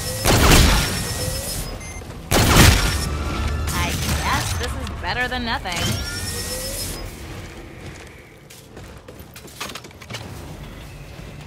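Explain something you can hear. Gunshots boom loudly.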